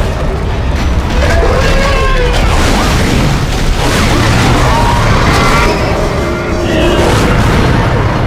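A monster roars and snarls.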